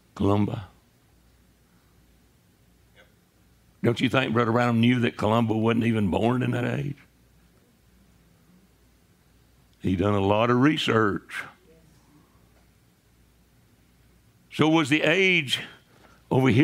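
An elderly man speaks calmly in short phrases with pauses.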